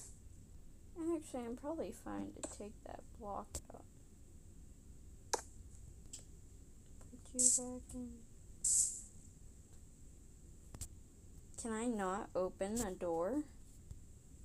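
A young girl talks with animation close to a microphone.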